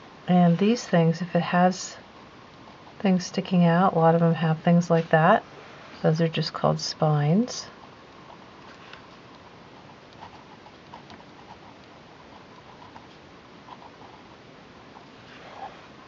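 A felt-tip pen scratches softly across paper.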